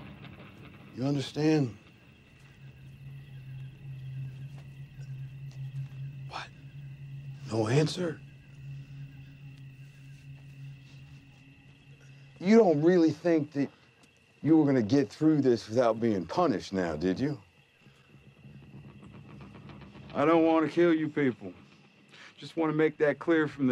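A man speaks slowly and mockingly, close by.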